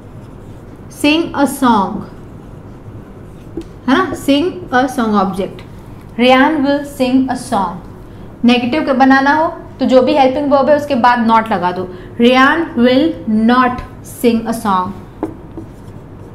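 A young woman speaks clearly and steadily into a close microphone, explaining.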